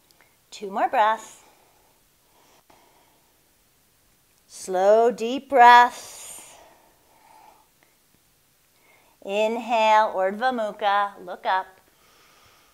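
A woman speaks calmly and softly, close by, in short phrases with pauses.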